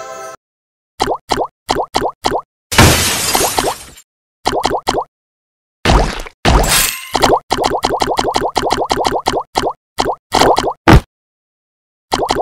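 Short rising electronic blips pop in quick bursts.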